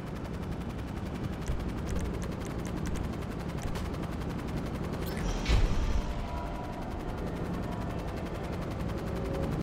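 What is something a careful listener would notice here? A tiltrotor aircraft's rotors thrum overhead as it flies past.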